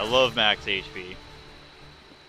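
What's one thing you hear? A magic blast bursts with a sparkling chime.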